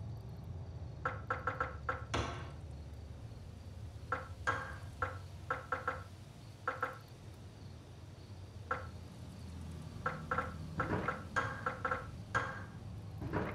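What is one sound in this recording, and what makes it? Short electronic menu blips sound as a selection moves through a game menu.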